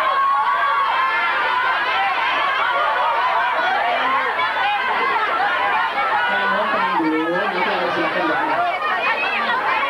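A young man speaks through a microphone to the crowd.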